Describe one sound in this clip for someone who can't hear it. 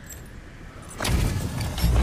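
A magical barrier bursts with a loud whoosh.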